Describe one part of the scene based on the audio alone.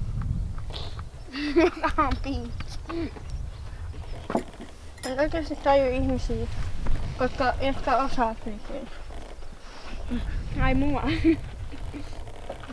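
A woman talks calmly nearby.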